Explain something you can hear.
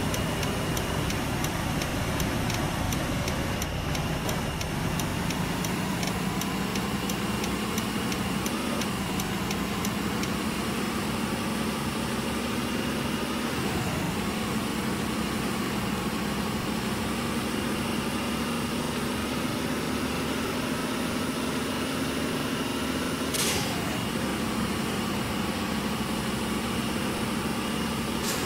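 A bus engine hums and rises in pitch as it speeds up.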